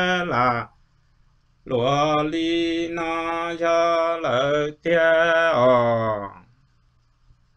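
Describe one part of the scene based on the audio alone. A man sings loudly in a strong, sustained voice.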